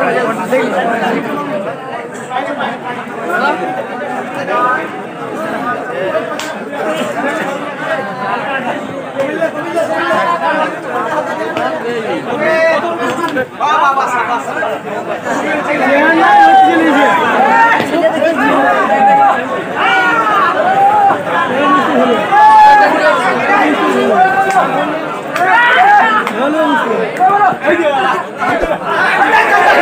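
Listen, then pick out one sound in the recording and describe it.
A large crowd chatters and shouts outdoors, growing louder.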